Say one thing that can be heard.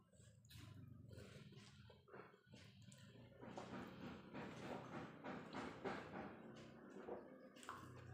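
A woman chews and smacks her lips noisily close by.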